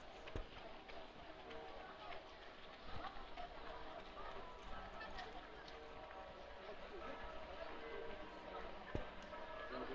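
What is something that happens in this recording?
A crowd of people chatters faintly in the distance outdoors.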